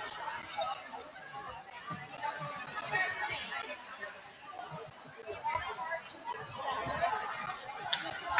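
Young women chatter and call out in a large echoing gym.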